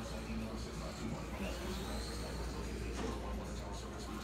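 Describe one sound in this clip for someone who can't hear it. A small electric toy car motor whines and revs up.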